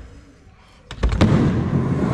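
A skateboard's wheels roll and clatter on a concrete ramp.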